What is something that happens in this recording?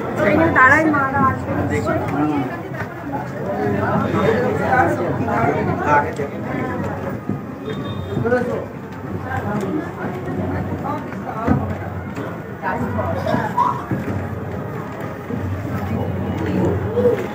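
A crowd of men and women chatters nearby.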